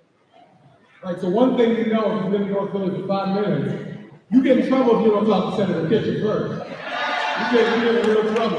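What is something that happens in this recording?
A man speaks loudly and with animation into a microphone over a loudspeaker.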